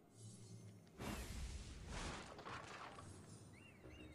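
Wooden crates crash and splinter apart.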